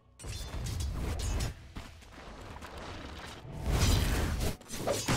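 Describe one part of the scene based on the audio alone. Video game spells and attacks crackle and boom in a battle.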